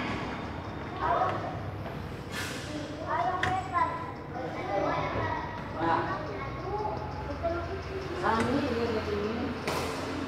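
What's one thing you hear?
Children call out and talk during play.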